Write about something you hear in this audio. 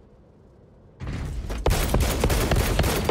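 A gun fires a rapid, loud burst.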